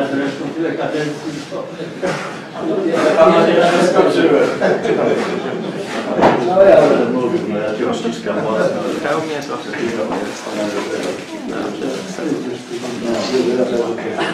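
Several voices murmur in the background of a gathering.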